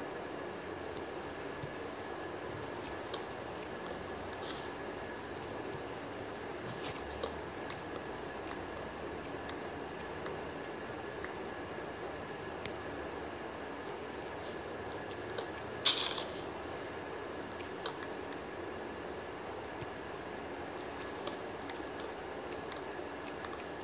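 Wooden blocks knock and crack as they are chopped.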